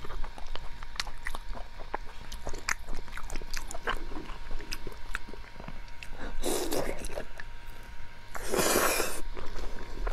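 A young woman chews soft, saucy food close to a microphone.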